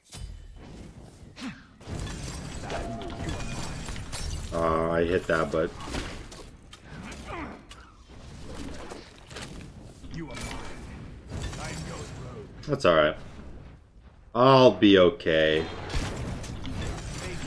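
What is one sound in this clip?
Video game fight sound effects clash and whoosh.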